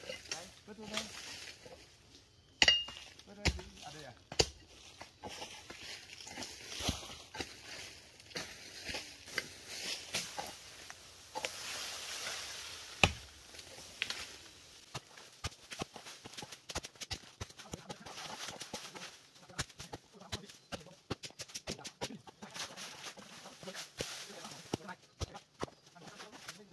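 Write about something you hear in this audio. Footsteps crunch on dry leaves along a dirt path.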